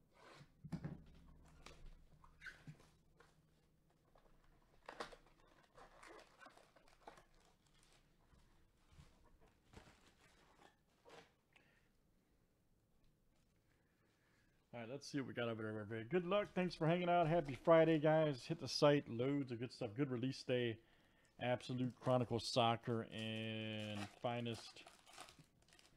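Plastic card wrappers crinkle and rustle as hands handle them.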